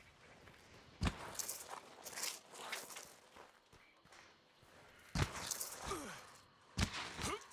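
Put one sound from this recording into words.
Footsteps crunch on dry dirt.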